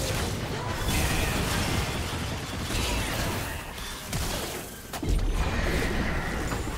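Fantasy battle sound effects whoosh, crackle and clash in a video game.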